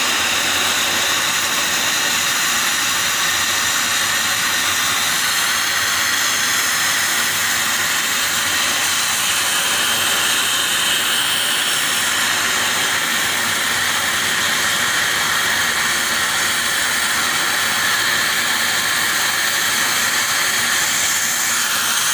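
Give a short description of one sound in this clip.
A plasma torch cuts through steel with a steady, loud hiss.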